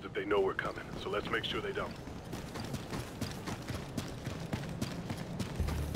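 Boots crunch on dirt as soldiers walk.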